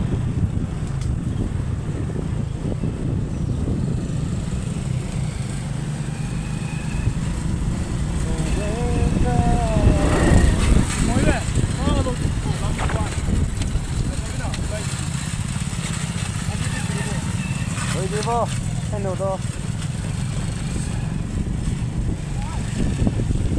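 Motorcycle engines rumble steadily nearby.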